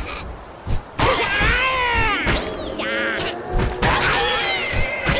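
Creatures growl and cry out as they are struck.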